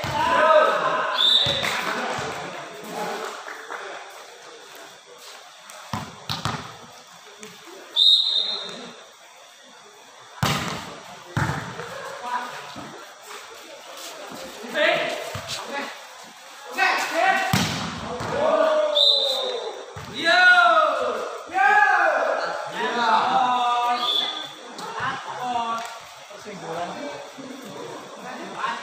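A volleyball is struck with sharp slaps during a game.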